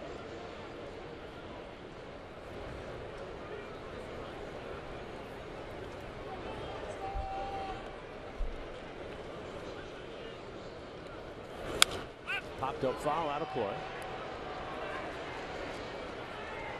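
A crowd murmurs steadily in a large outdoor stadium.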